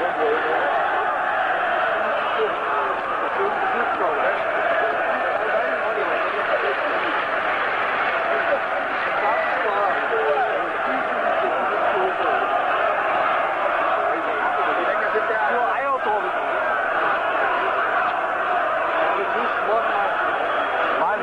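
A large stadium crowd roars and chants all around, outdoors.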